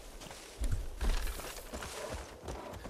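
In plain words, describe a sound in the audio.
Branches rustle as someone pushes through them.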